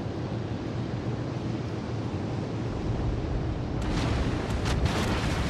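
Water rushes against a ship's hull.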